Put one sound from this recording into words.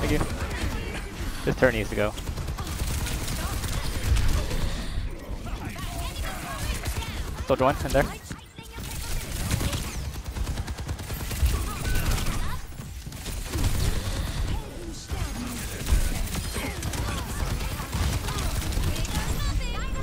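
Pistols fire in rapid bursts.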